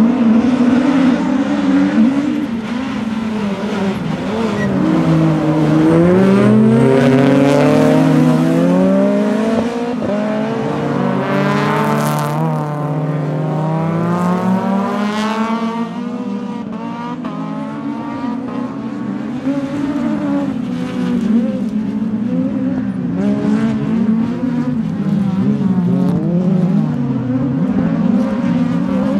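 Racing car engines roar and rev, rising and falling as the cars speed past.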